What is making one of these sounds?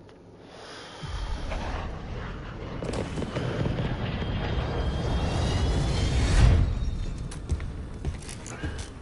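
Jet engines roar loudly as a large plane flies close.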